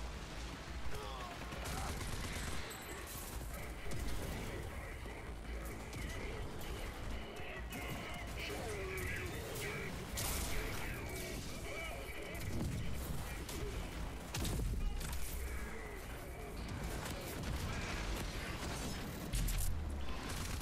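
Gunfire and energy blasts crack repeatedly.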